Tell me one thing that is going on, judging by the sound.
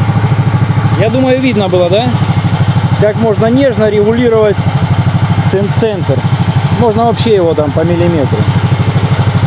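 A man speaks close by over the engine.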